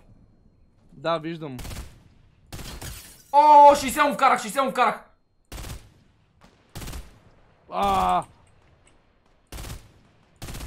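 Gunshots crack in quick single bursts.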